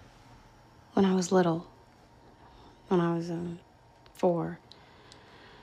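A woman speaks quietly, close by.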